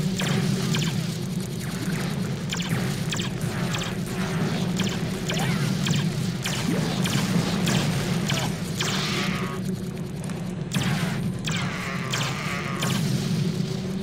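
Blasts and explosions crackle rapidly in a game.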